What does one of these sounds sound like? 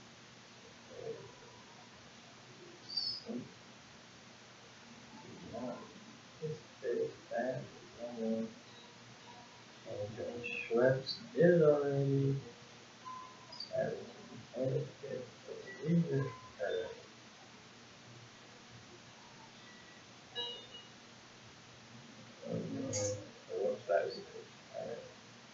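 A young woman talks quietly and casually close by.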